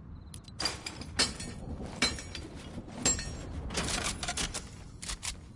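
A treasure chest creaks open with a sparkling chime.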